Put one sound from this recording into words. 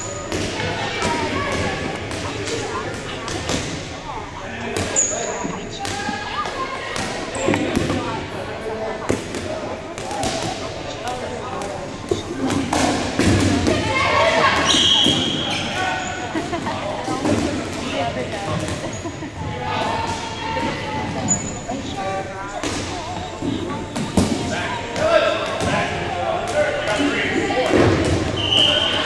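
Rubber balls bounce and smack loudly on a wooden floor, echoing in a large hall.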